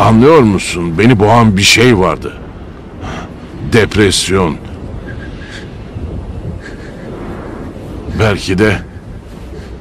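An elderly man speaks in a low, gravelly voice close by.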